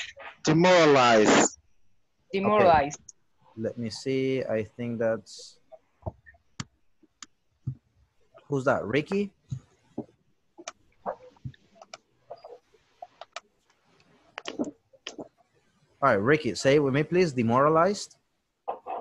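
A man speaks over an online call, in short bursts with pauses.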